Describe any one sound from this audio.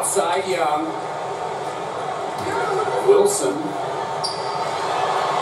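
A crowd murmurs and cheers steadily.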